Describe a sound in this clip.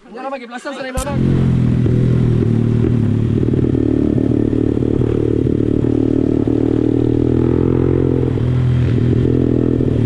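A dirt bike engine roars steadily up close.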